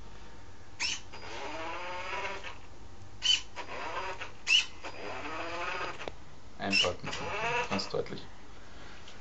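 A small electric motor whirs, revving up and down.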